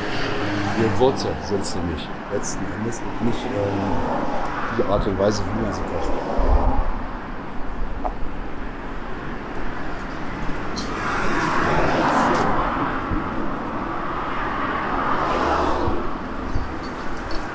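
Street traffic hums steadily nearby outdoors.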